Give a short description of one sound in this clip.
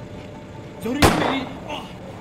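A punch lands with a sharp, heavy thud.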